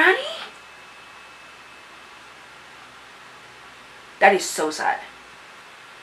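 A young girl speaks briefly and with animation, close to a microphone.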